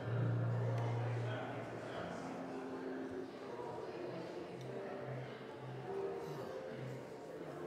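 An organ plays slow, held notes that echo in a large hall.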